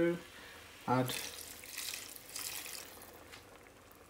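Water pours into a sizzling pan.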